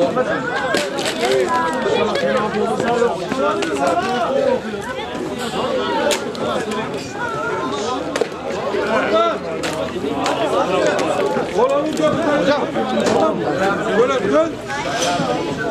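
Men shout and call out to each other.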